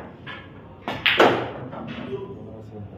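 Pool balls clack together and roll on the table.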